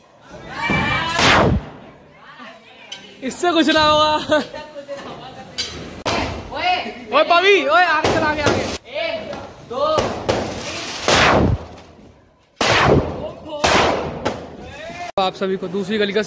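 Firecrackers bang loudly, one after another, with sharp echoing cracks.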